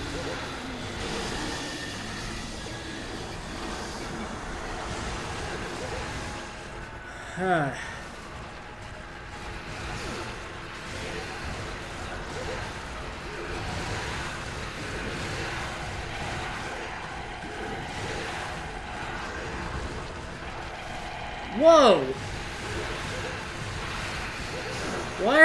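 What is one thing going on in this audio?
A sword slashes and clangs against a creature.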